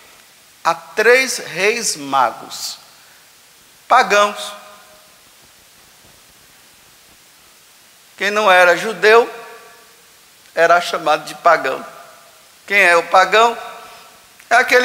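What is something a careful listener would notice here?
A man speaks calmly with pauses through a microphone in a large echoing hall.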